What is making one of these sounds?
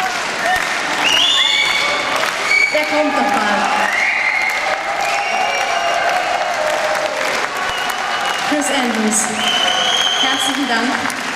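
Members of a crowd whistle shrilly.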